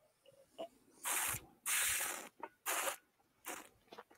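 A man sniffs deeply.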